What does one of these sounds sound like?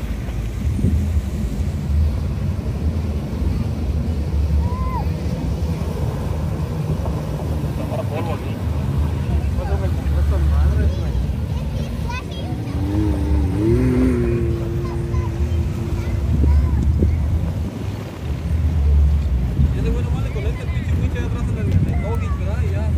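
A truck engine rumbles nearby.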